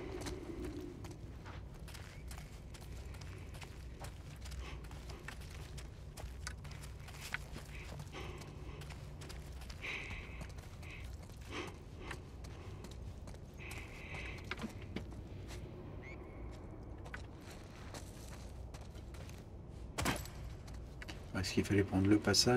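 Footsteps crunch slowly over debris in a quiet, echoing space.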